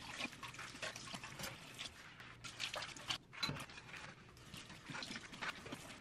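Tap water runs into a sink.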